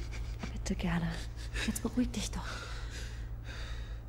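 A young woman speaks softly and soothingly.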